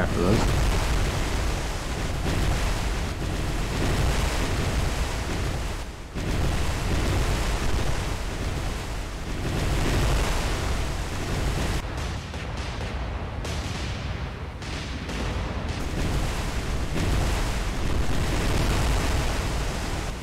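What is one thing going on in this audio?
Waves wash and churn against a ship's hull.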